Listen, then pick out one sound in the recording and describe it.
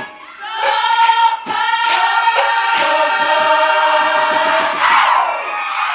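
Performers clap their hands in rhythm.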